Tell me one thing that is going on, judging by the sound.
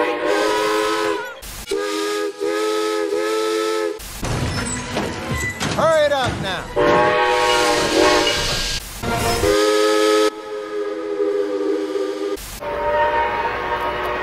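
A steam train whistle blows in long, steady chords.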